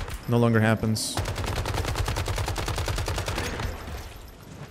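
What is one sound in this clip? An automatic rifle fires in a rapid burst.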